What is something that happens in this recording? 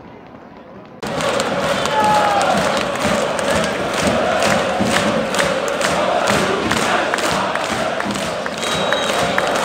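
Fans close by clap their hands in rhythm.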